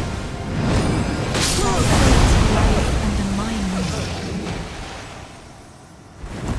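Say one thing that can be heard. Magical blasts roar and crackle, then fade away.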